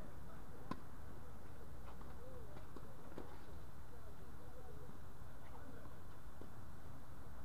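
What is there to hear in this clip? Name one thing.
A tennis ball is struck by a racket with sharp pops.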